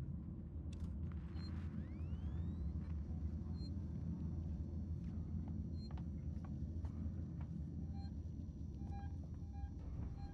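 A motion tracker beeps at a steady, regular pace.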